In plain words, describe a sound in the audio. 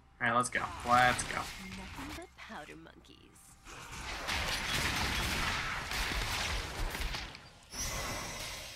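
Magical spell effects whoosh and crackle during a fight.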